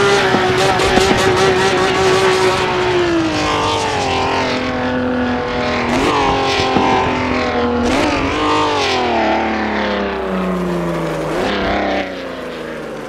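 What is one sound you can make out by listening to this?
A 1960s V12 Formula One engine screams at high revs, its pitch climbing and dropping with each upshift.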